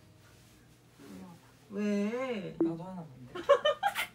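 A young woman cries out in a whining voice close by.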